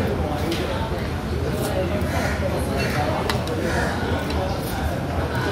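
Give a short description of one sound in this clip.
A metal fork and spoon clink against a plate.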